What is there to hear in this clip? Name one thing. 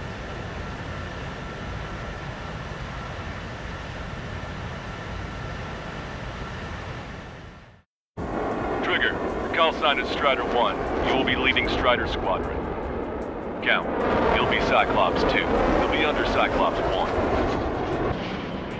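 Jet engines roar steadily overhead.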